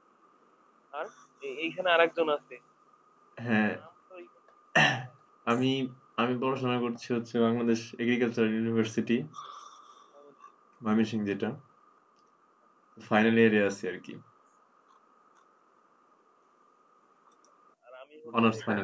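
A young man talks casually over an online call.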